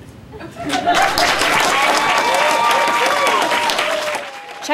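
An audience claps and cheers close by.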